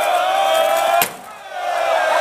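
A heavy plastic booth thuds as people shove it over.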